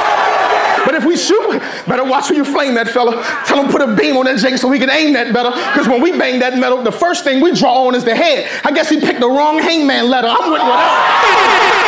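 A man raps loudly and forcefully into a microphone.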